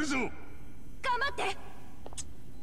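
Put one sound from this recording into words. A woman calls out with encouragement.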